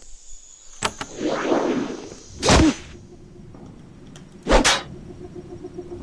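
A magic spell bursts with a loud whooshing blast.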